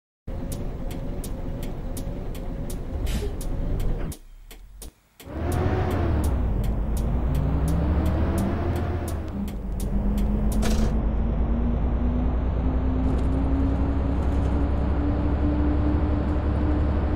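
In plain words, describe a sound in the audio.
A city bus's diesel engine runs and accelerates.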